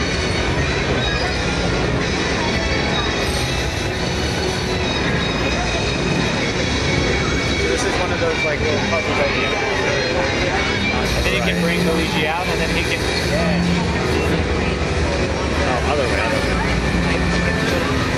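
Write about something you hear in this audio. Game music and effects play from a television loudspeaker.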